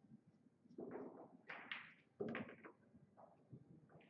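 Billiard balls click against each other on the table.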